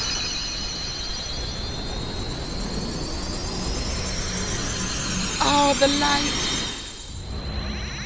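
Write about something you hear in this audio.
A bright magical energy hum rises steadily in pitch and swells.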